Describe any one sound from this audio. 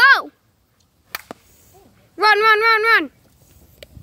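A plastic bat hits a plastic ball with a hollow crack.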